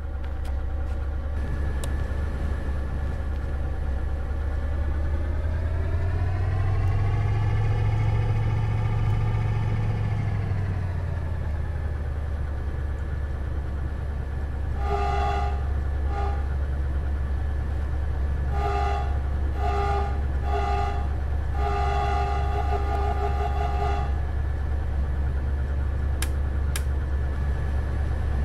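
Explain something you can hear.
A diesel engine idles with a deep, steady rumble.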